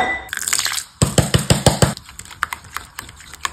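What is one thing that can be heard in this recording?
A spoon scrapes and stirs sauce in a glass bowl.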